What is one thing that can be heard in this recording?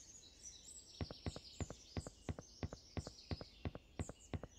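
Footsteps tap quickly and evenly on a wooden walkway.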